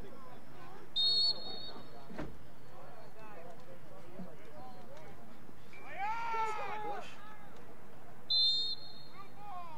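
A referee's whistle blows sharply outdoors.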